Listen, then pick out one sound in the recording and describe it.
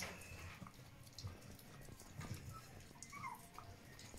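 A puppy laps and slurps wet food from a metal bowl.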